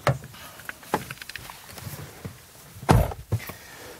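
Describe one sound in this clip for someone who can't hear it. A man settles into a car seat with soft rustling.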